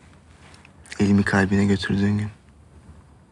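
A man speaks softly and closely.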